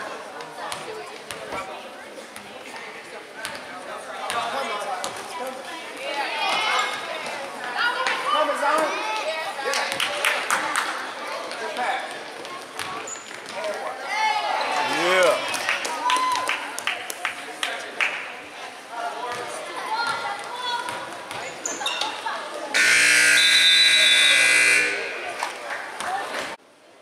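A crowd of spectators cheers and chatters.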